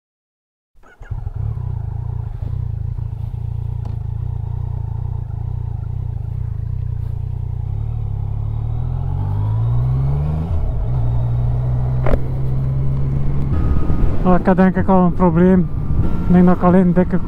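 A motorcycle engine rumbles steadily and revs up as it rides along.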